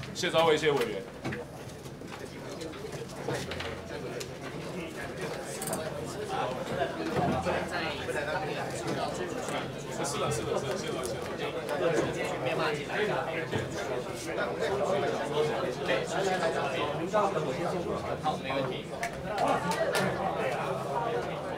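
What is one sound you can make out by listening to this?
Chairs and papers shuffle and knock as people move about.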